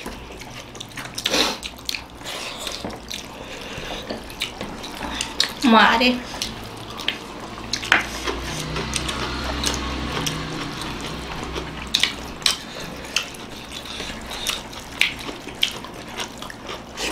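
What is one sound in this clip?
Fingers squish and mix rice on plates.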